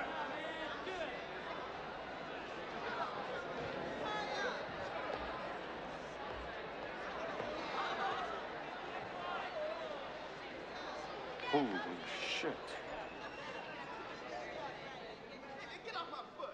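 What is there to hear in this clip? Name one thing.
A large crowd of teenagers chatters in a large echoing hall.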